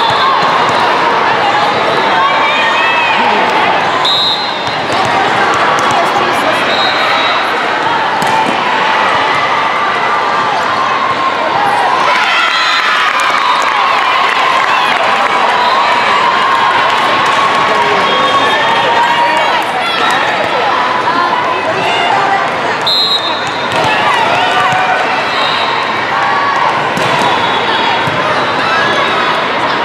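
Many voices chatter and shout throughout a large echoing hall.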